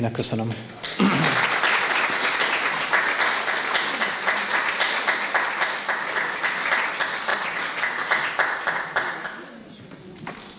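A crowd applauds steadily, then the clapping stops.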